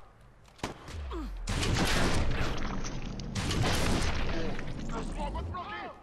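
A rifle fires a few shots.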